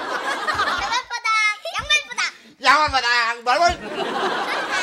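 A young girl laughs and squeals.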